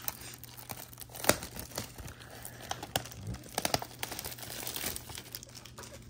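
Plastic wrap crinkles and rustles under fingers.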